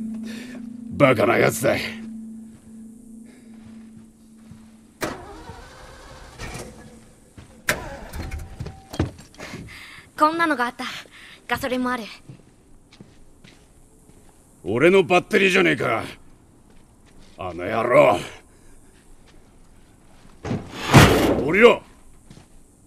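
A man speaks in a gruff, low voice.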